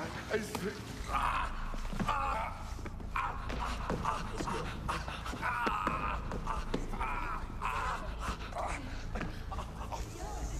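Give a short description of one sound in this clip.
A middle-aged man shouts in distress nearby.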